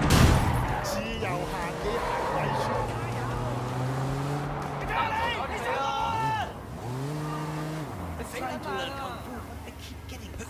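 Tyres screech as a car skids through turns.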